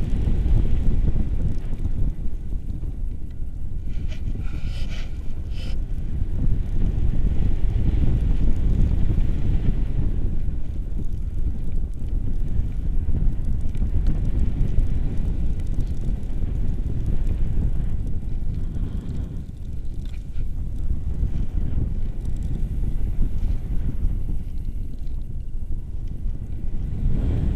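A man talks close by, his voice partly lost in the wind.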